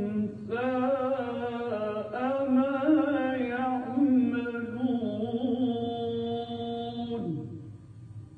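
A man chants in a drawn-out, melodic voice through a microphone.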